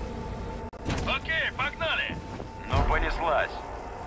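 A man speaks with animation.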